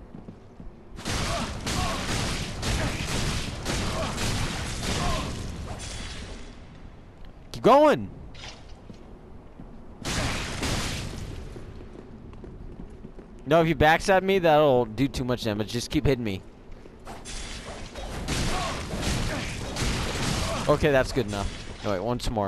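Swords clash and ring against armour.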